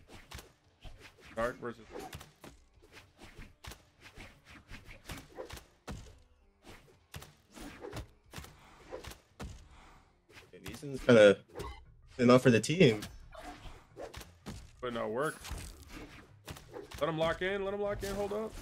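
Blades clash and blows land in quick, sharp hits.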